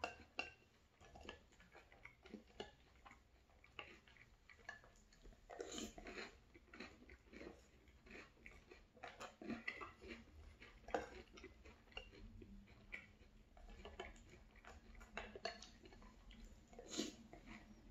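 A man slurps milk from a spoon.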